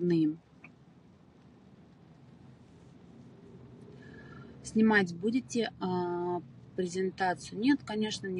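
A young woman speaks close to a phone microphone, calmly and with pauses.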